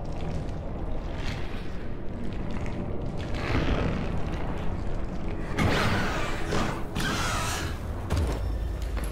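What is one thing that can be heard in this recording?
A creature growls and snarls close by.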